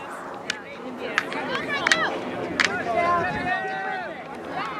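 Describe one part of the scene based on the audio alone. Teenage girls shout and call out across an open field.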